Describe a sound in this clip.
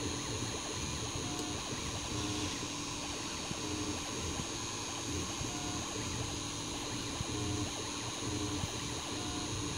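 A 3D printer's stepper motors whir and buzz in short, changing tones as the print head moves.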